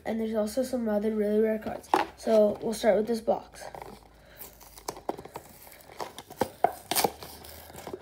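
A cardboard box is picked up and handled.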